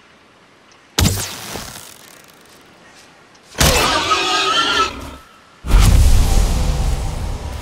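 A club strikes with heavy thuds.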